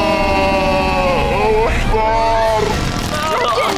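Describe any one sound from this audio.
Two young boys scream in fright.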